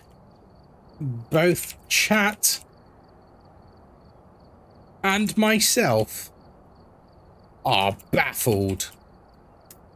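A young man speaks calmly and closely into a microphone, in short bursts.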